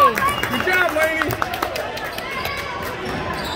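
A basketball is dribbled on a hardwood court.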